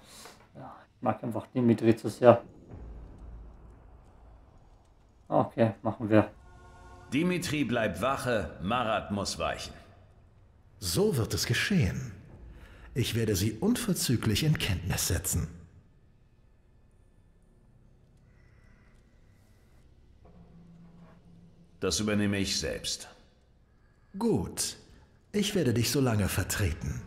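A young man talks into a microphone at close range, with pauses.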